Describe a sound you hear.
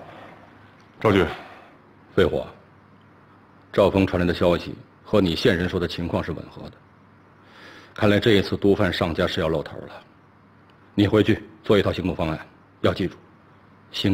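A middle-aged man speaks calmly and seriously.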